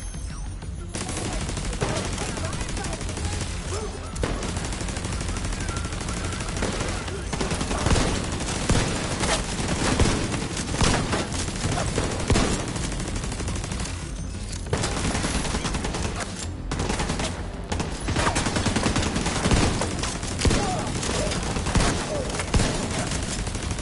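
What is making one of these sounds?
Guns fire in rapid bursts with loud, echoing shots.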